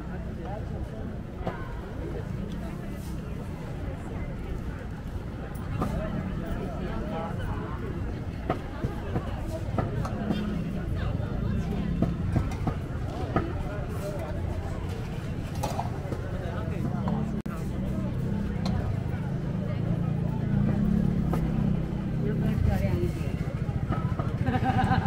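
A busy outdoor crowd murmurs throughout.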